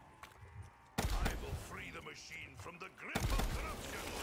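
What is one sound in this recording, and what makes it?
A gun fires loud, booming shots.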